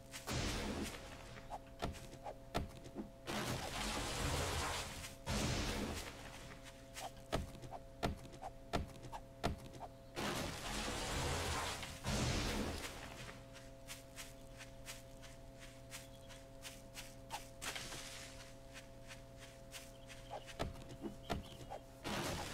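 An axe chops into wood with repeated sharp thuds.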